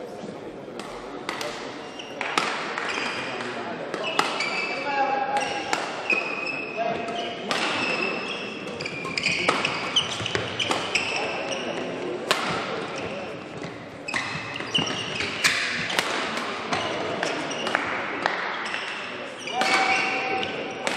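Rackets strike a shuttlecock in quick rallies inside a large echoing hall.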